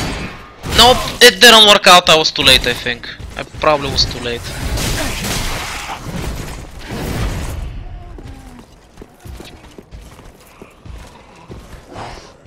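Armour clanks with heavy footsteps as a knight walks on stone.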